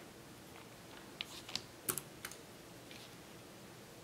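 A plastic glue gun knocks down onto a table.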